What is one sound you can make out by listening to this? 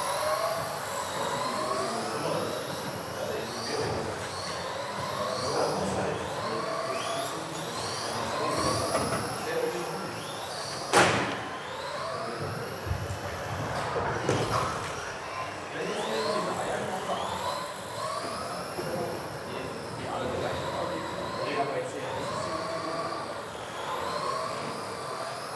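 Small electric model cars whine and buzz as they race around a large echoing hall.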